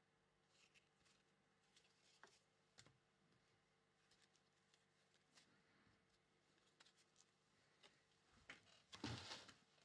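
Card packs crinkle and rustle in a man's hands.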